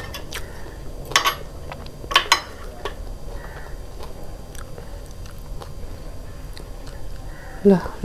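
Metal chopsticks click against a ceramic plate.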